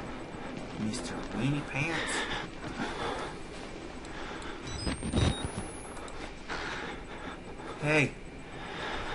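A young man talks quietly and tensely close to a microphone.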